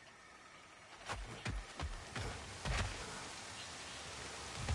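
Heavy footsteps thud on wooden planks.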